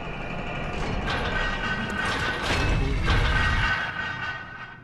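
A heavy iron gate grinds and rattles open.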